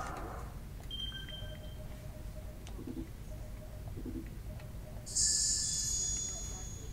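Short electronic menu tones beep.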